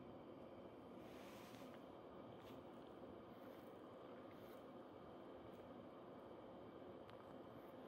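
A hand strokes a cat's fur with a soft rustle.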